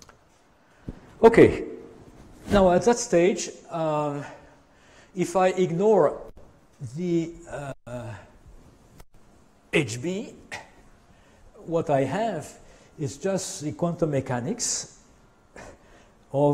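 An elderly man lectures calmly through a microphone.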